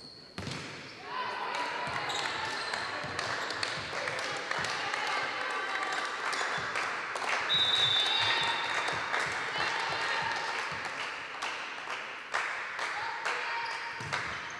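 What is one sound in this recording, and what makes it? Young women shout and call out to each other across the court.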